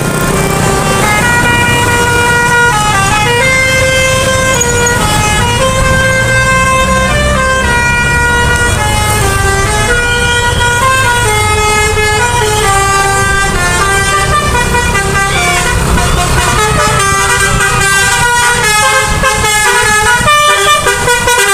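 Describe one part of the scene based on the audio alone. A bus horn plays a loud, tuneful melody of long notes.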